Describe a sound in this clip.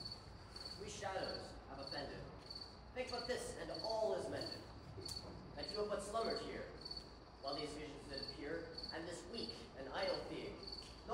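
A performer speaks out loud from a distant stage in a large, echoing hall.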